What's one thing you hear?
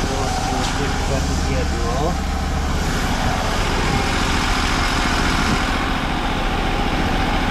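An engine runs with a steady loud drone.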